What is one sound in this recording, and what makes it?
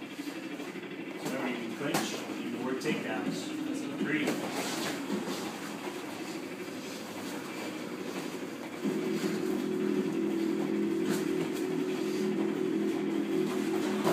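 Feet shuffle and thump on a padded mat.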